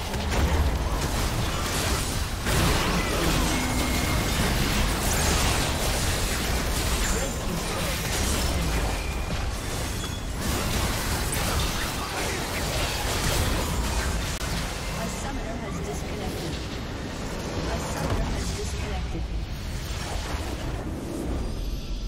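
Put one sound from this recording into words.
Spell effects and clashes of a battle in a game crackle and boom densely.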